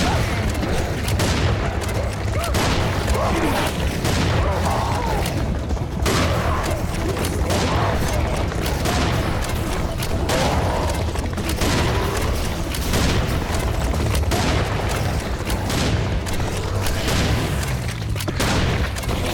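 A shotgun fires in loud repeated blasts.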